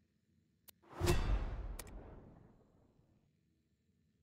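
A bright reward chime rings out and slowly fades.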